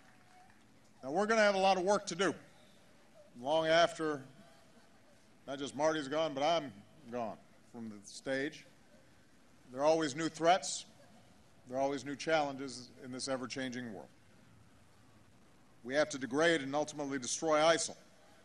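A man speaks calmly and deliberately through a microphone and loudspeakers, outdoors.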